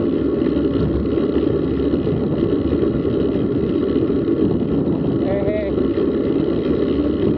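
Wind buffets the microphone steadily while riding outdoors.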